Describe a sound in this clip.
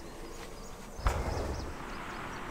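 A fiery blast bursts with a sharp crack.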